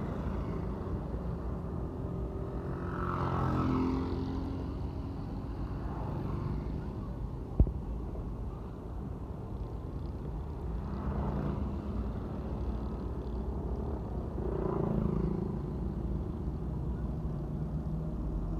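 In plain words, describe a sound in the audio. Motorcycles buzz past close by.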